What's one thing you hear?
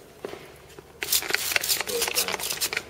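A spray bottle hisses in short, quick bursts.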